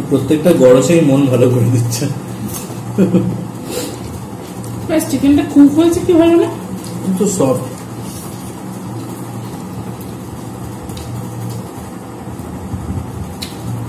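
Hands squish and mix rice on plates.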